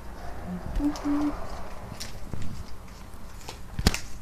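A plastic wrapper crinkles in small hands.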